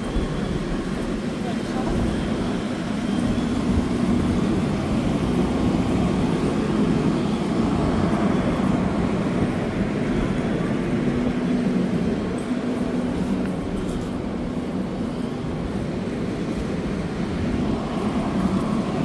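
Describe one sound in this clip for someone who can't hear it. A fire engine's motor rumbles steadily nearby.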